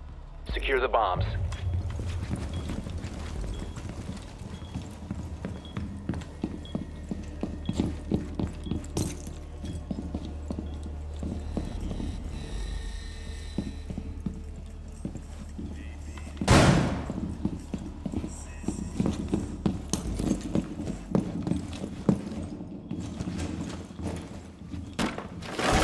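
Footsteps tread quickly over a hard floor.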